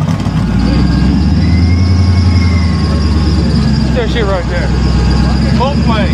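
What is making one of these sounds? A truck engine rumbles deeply and steadily close by.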